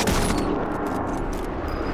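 A rifle shot cracks and echoes.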